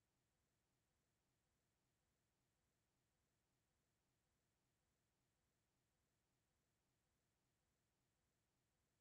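A clock ticks quietly and steadily.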